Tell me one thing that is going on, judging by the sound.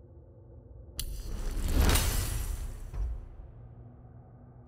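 A game menu chime and whoosh sound as an upgrade is bought.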